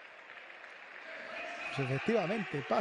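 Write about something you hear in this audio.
A crowd cheers louder.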